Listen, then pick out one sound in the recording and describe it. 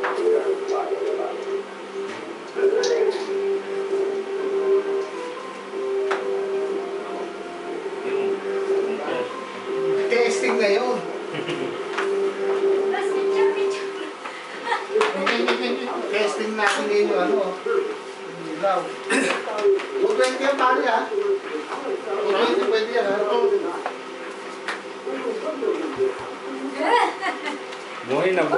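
Electronic game music plays from a television.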